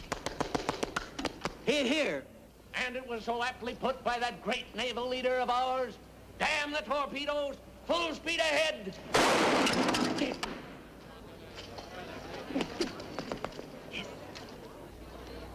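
A snare drum is beaten in quick rolls.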